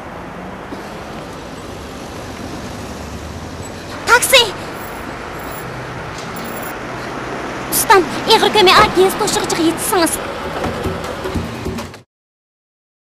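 Traffic hums steadily along a street.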